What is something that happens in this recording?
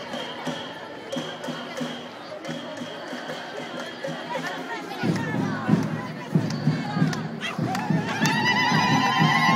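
A crowd of women chants and calls out outdoors.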